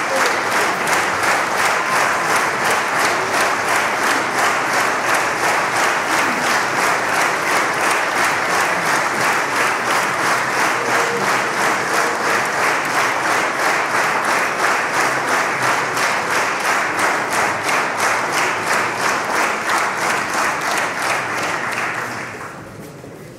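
An audience claps steadily in a large hall.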